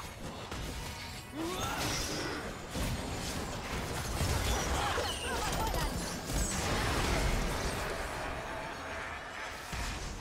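Spell effects whoosh and crackle in a fast fight.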